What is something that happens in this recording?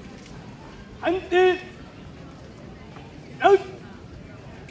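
A young man shouts loud, drawn-out marching commands outdoors.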